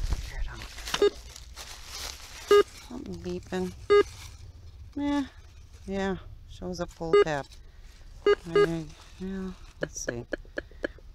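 A metal detector beeps in short tones now and then.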